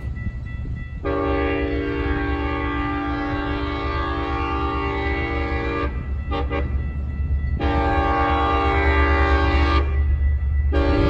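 A train horn sounds in long blasts in the distance.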